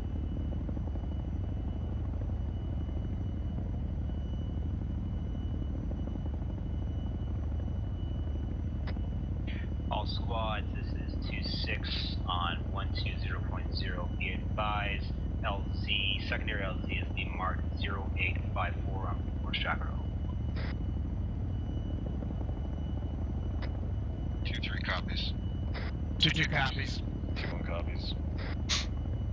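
An aircraft engine drones steadily and low.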